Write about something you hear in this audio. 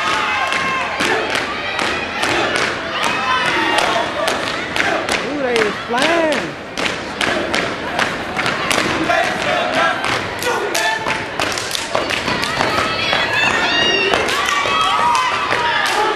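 A step team stomps and claps in a rhythm that echoes around a large hall.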